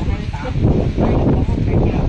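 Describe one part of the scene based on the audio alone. A middle-aged woman talks and laughs close by.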